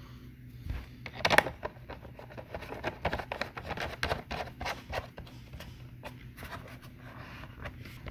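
Plastic knobs click as fingers turn them.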